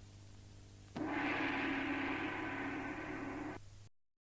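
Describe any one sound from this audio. A large gong is struck once and rings out loudly with a shimmering roar.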